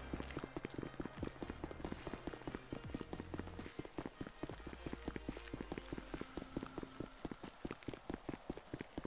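Quick footsteps run on pavement.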